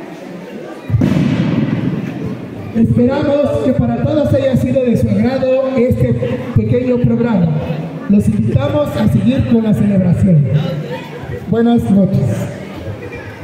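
A man speaks loudly into a microphone, heard through loudspeakers in an echoing hall.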